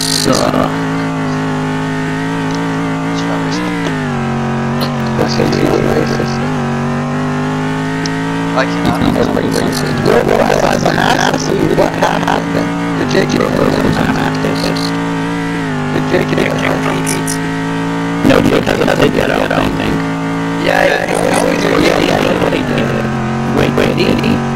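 A racing car engine drones steadily, its pitch stepping down and up as gears change.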